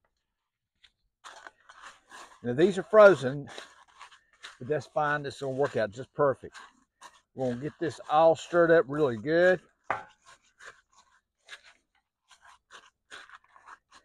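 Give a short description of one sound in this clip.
A spatula scrapes and whisks eggs in a bowl.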